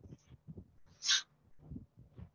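A marker squeaks briefly on a whiteboard.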